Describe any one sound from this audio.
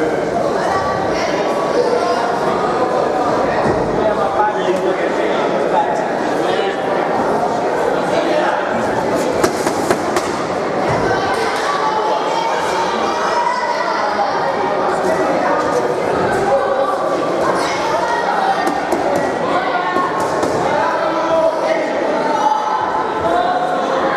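A crowd of spectators shouts and cheers, echoing in a large hall.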